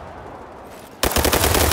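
A rifle fires a rapid burst close by.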